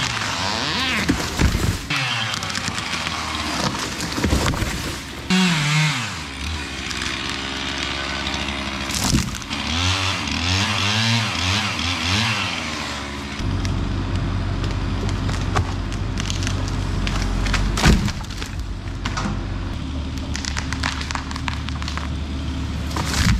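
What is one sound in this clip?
A falling tree crashes to the ground.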